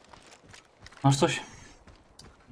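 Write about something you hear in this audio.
A young man talks briefly into a microphone.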